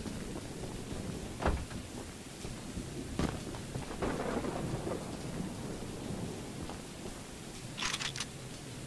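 A heavy train engine rumbles steadily.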